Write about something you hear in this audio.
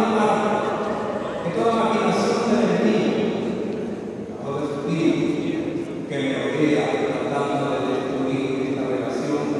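An elderly man prays aloud with feeling in a large echoing hall.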